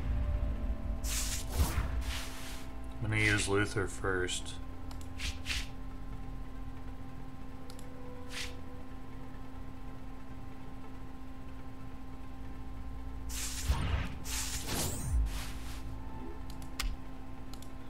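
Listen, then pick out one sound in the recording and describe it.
Short game sound effects whoosh and chime as cards are played.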